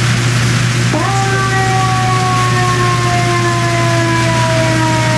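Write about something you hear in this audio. A fire truck siren starts suddenly and wails, slowly falling in pitch.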